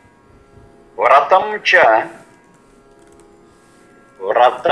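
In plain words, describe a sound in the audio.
An elderly man speaks calmly and clearly into a microphone.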